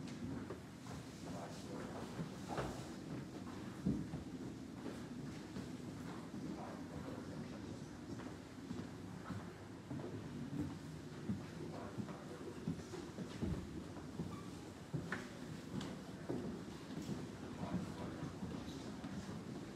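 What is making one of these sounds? An elderly man speaks softly and briefly.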